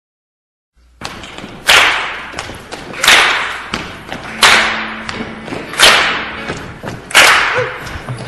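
A group of children sing together.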